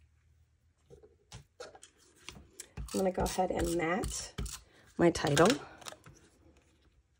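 Paper rustles and taps.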